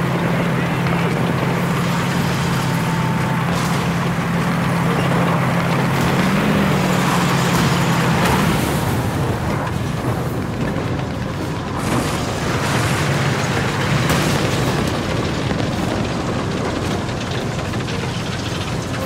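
Tank tracks clank and grind as the tank moves.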